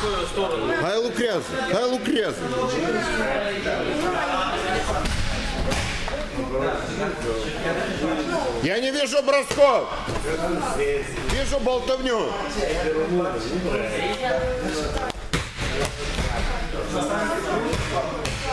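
Children talk and shout throughout a large echoing hall.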